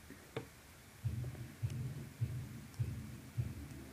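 A toy motorcycle rolls back and forth with soft rhythmic thumps.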